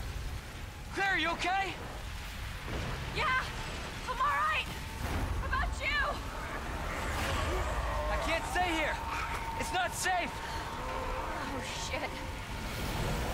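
A young woman shouts back loudly.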